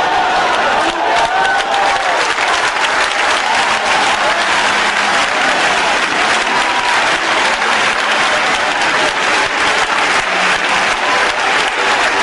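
A crowd claps hands in rapid, steady applause.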